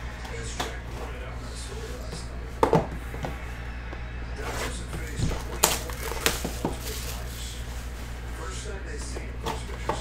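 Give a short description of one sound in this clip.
Cardboard boxes slide and tap on a table.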